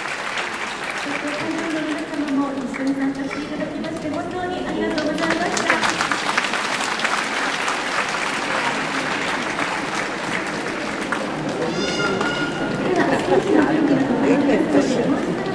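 A woman speaks brightly through a loudspeaker.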